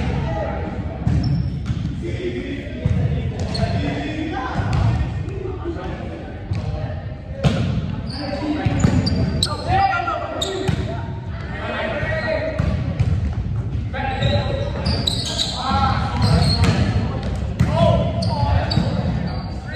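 Sneakers squeak on a hard gym floor.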